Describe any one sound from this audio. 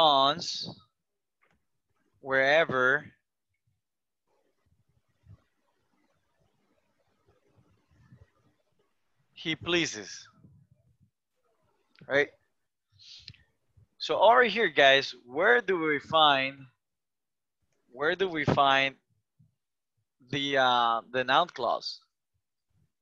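A man speaks calmly in short phrases through an online call.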